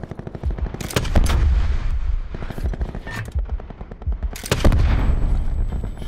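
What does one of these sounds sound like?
A blast booms.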